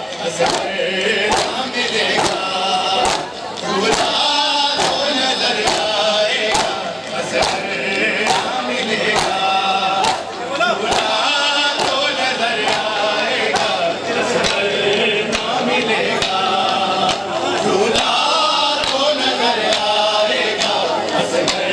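A crowd of men chants loudly together in an echoing room.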